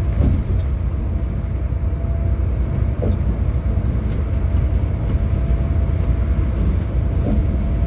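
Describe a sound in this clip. A bus engine rumbles steadily while driving on a highway.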